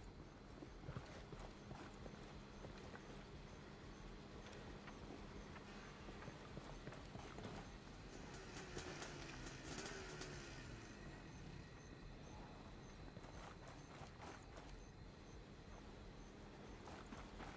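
Footsteps crunch on gravel and concrete.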